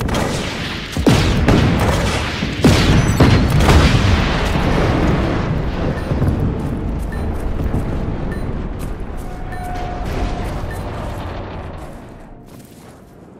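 A large explosion roars and rumbles away.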